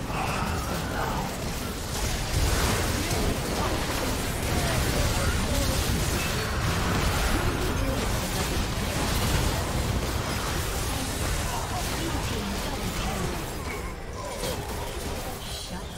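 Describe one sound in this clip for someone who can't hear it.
Magic blasts and sword strikes crackle and boom in a hectic video game battle.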